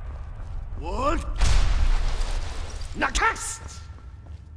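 A heavy iron door creaks open and shuts with a clang.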